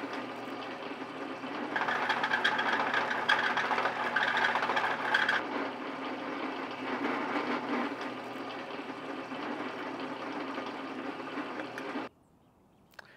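A drill press whirs steadily as it bores into wood.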